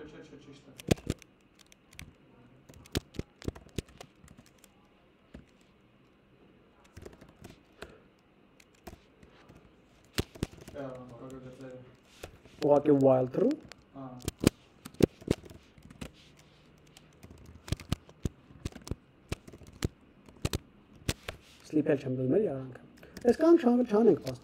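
Keys clack on a keyboard in quick taps.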